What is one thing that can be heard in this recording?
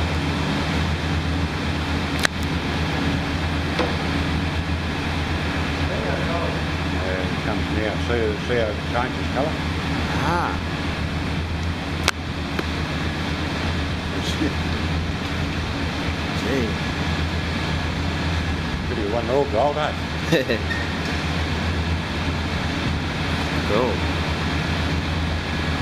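Molten metal pours and sizzles into moulds.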